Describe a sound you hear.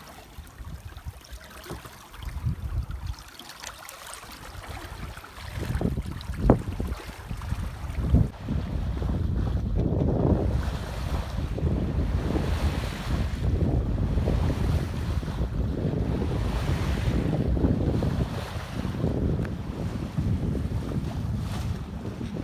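Waves splash against a moving boat's hull.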